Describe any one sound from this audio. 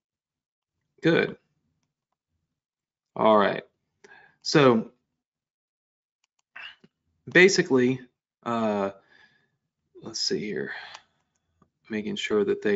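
A man speaks calmly into a microphone in short bursts with pauses.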